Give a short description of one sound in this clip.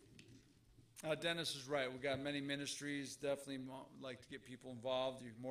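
A man speaks steadily through a microphone.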